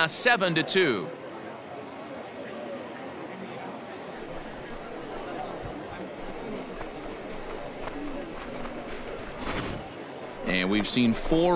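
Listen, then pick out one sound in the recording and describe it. A large crowd cheers and murmurs in a stadium.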